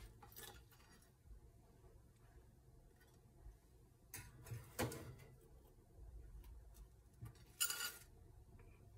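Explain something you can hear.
Toast slices clatter softly onto a ceramic plate.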